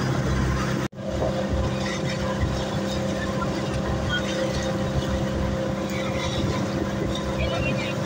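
Water rushes and splashes along a moving boat's hull.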